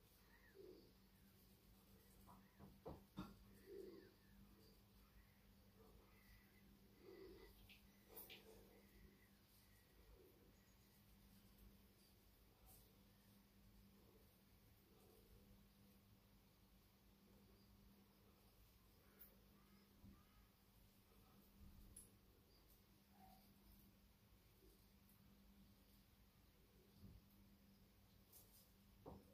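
A razor scrapes softly over stubble.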